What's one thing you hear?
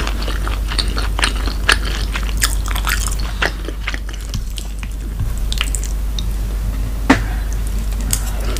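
A woman chews and slurps food close to a microphone.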